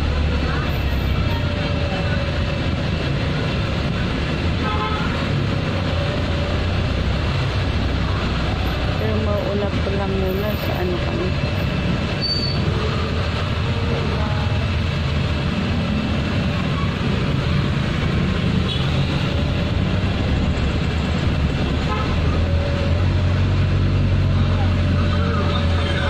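Small electric fans whir steadily close by.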